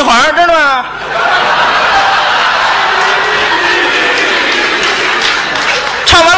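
A large audience laughs and applauds in a hall.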